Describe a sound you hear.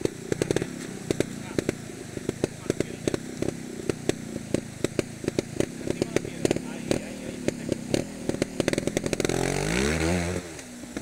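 Water splashes over rocks.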